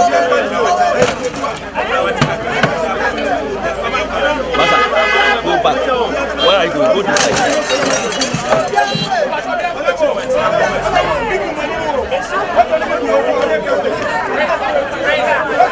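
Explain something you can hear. A crowd of men and women shout and chatter loudly outdoors.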